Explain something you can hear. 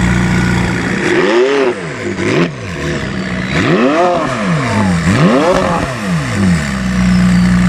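A sports car engine revs loudly several times, rising and falling.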